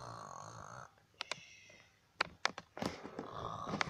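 Soft toys rustle and bump as they are handled close by.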